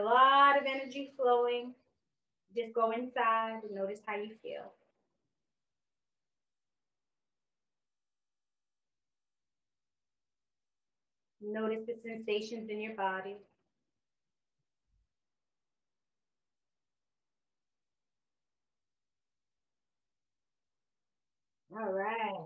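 A woman speaks slowly and calmly, with long pauses.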